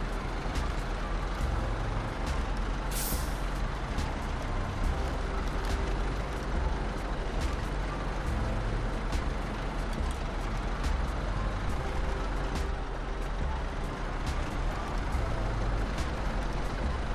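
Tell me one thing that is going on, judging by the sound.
Snow crunches under a truck's tyres.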